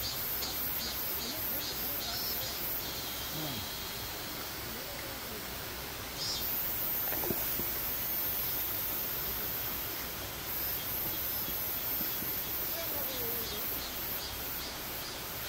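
Elderly men talk faintly outdoors with brief remarks.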